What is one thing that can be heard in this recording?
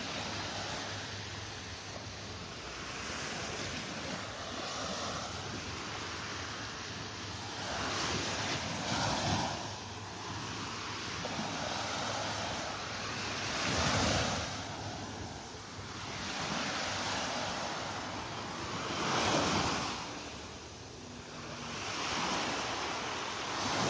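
Small waves wash onto the shore and break in gentle surges.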